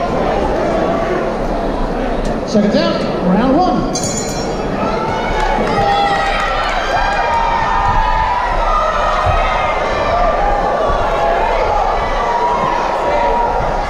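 A crowd talks and calls out in a large echoing hall.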